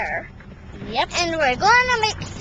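A young boy talks close to the microphone in a lively, sing-song voice.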